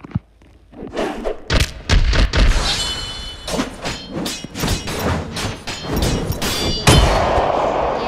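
Punches land with sharp thumps in quick bursts.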